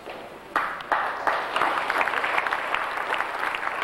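Footsteps thud on a wooden stage.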